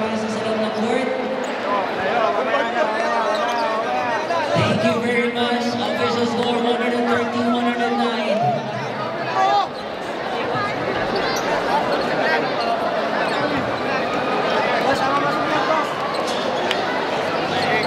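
A large crowd chatters and shouts in an echoing hall.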